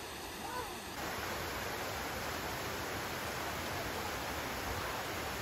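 A small waterfall splashes and rushes over rocks nearby.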